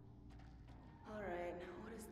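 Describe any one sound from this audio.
A man's voice speaks in a game.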